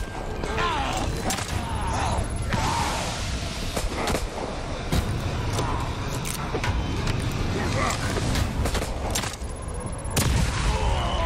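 A crossbow fires bolts with sharp snaps.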